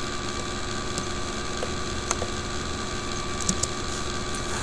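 Fingers squeak and click on guitar strings.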